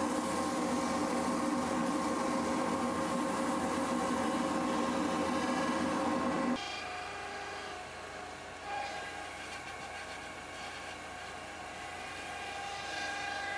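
A cloth rubs against a spinning wooden bowl with a soft hiss.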